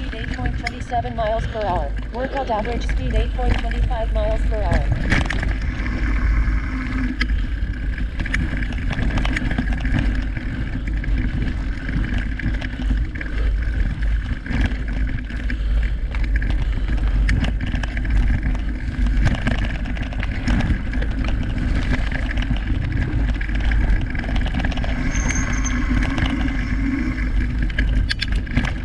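Bicycle tyres rumble and crunch over a dirt trail.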